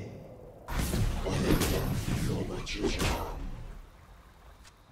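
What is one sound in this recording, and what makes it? Video game combat effects clash and crackle loudly.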